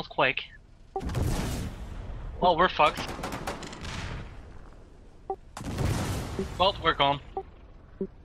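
A heavy gun fires loud booming shots.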